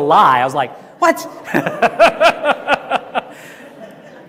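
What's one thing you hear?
A man laughs through a microphone.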